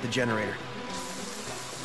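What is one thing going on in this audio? A young man speaks briefly with a tense voice.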